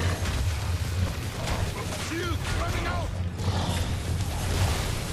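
A deep low rumble drones steadily.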